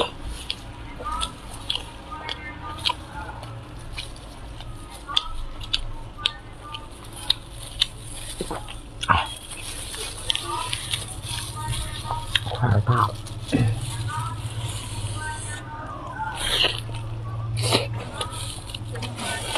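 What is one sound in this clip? A woman chews food with wet, smacking sounds close to a microphone.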